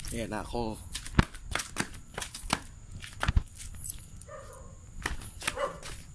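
A rabbit hops with soft thumps on the ground.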